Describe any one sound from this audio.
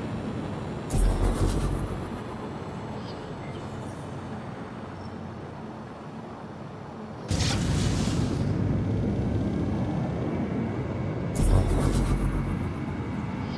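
Loud whooshing bursts of thrust rush past now and then.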